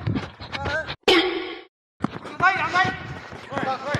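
A foot kicks a football on artificial turf.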